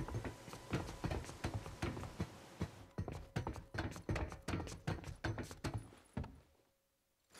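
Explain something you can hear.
Boots clang on metal ladder rungs in quick, regular steps.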